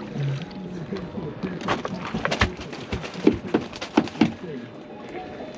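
A fish flaps and thrashes in a landing net.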